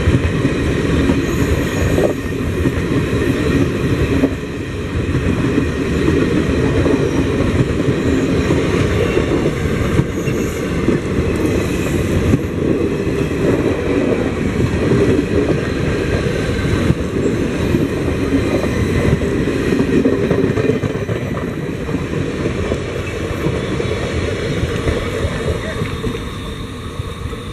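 A passenger train rumbles past close by, its wheels clattering over the rail joints.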